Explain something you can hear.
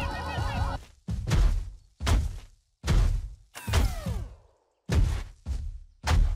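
Heavy thuds boom again and again.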